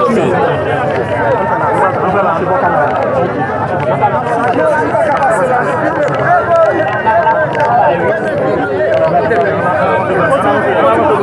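A crowd of men talks and shouts all around, close by.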